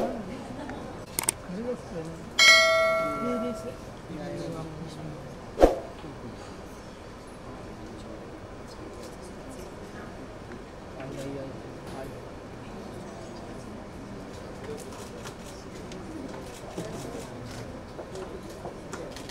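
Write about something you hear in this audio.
A small crowd of men and women chatters nearby.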